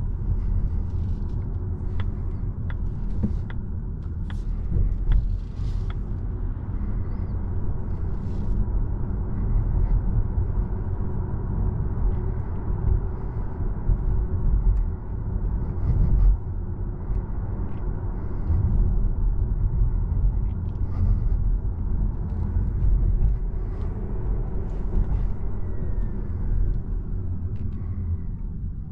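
Tyres roll on a road surface.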